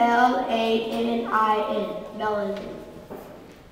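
A boy speaks clearly into a microphone.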